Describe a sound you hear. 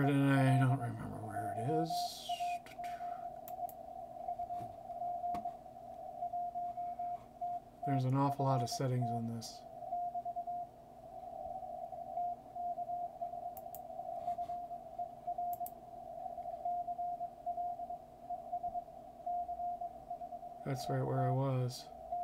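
A radio receiver plays a steady stream of Morse code beeps through hiss.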